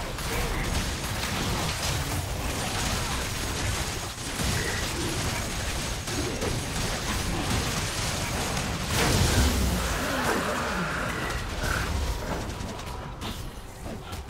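Magic blasts and clashing blows burst out in a fast battle.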